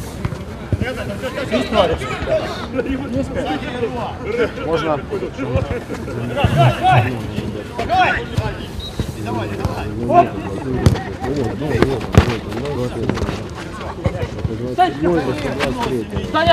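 Several men shout and talk with animation close by.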